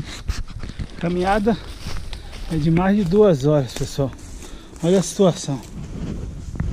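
A man speaks close by, breathless and animated.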